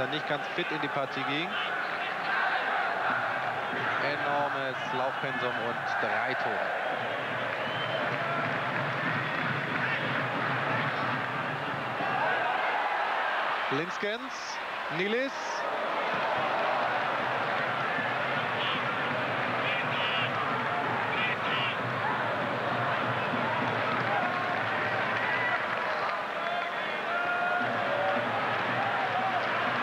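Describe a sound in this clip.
A stadium crowd murmurs and calls out in a large open space.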